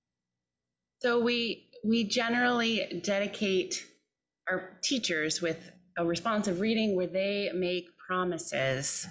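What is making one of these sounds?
A woman speaks with animation into a microphone, heard with the echo of a large hall.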